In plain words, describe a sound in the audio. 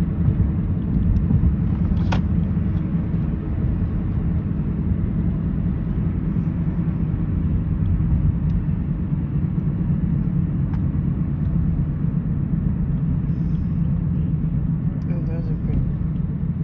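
A car's tyres rumble steadily on the road.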